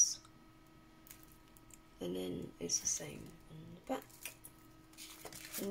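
A plastic packet crinkles and rustles as it is handled.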